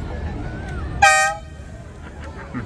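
A tram's bell rings sharply.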